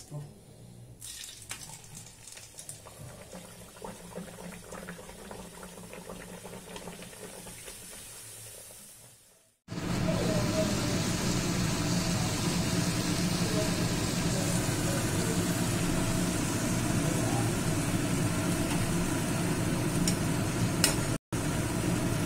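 Hot oil sizzles and crackles steadily as dough fries.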